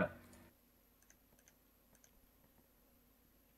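Soft digging blips sound in a game.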